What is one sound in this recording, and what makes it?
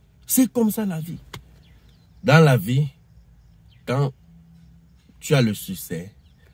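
A man speaks close to the microphone in short, emphatic bursts.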